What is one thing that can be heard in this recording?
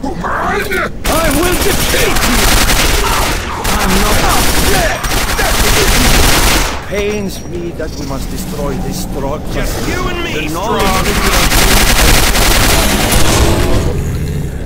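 A rapid-fire gun shoots in loud bursts.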